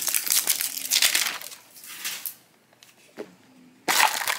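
Hard plastic clicks and rattles as a toy capsule is handled.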